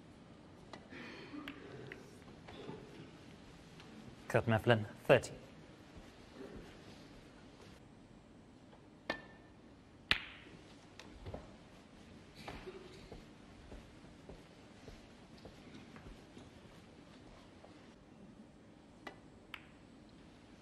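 Snooker balls click sharply as a cue strikes them.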